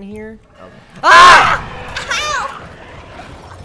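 A young man shouts loudly in fright.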